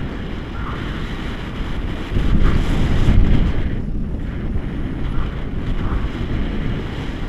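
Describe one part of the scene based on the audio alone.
Wind rushes and buffets the microphone during a paraglider flight.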